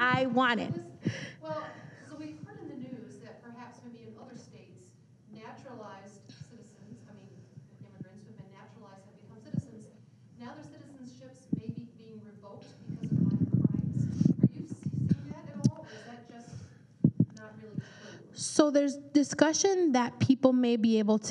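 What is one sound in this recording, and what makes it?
A woman speaks quietly from across a large room.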